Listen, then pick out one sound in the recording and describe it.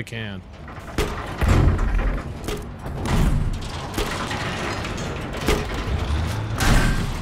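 Explosions boom and crack now and then.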